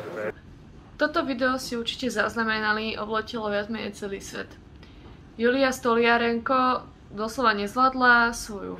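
A young woman speaks calmly and close up, as if over an online call.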